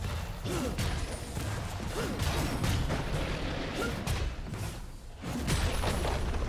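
Game spell effects and weapon hits crackle and clash during a battle.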